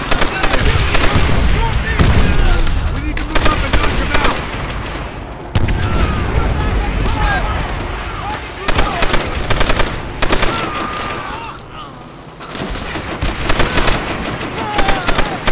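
A heavy machine gun fires in loud, rapid bursts.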